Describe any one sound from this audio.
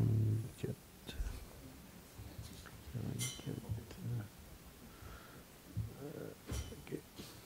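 An older man speaks calmly into a microphone, in short phrases with pauses.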